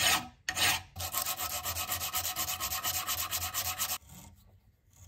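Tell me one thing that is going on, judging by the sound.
An abrasive block scrubs quickly back and forth on metal.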